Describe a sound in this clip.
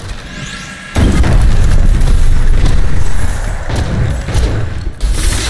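Weapons clash and strike loudly in a fight.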